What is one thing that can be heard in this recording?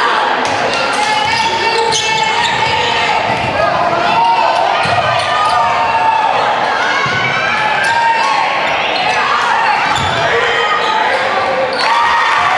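Sneakers squeak sharply on a wooden court, over and over.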